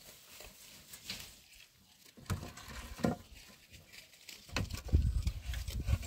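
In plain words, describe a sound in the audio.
Dry branches scrape and clatter as someone pulls them from a woodpile.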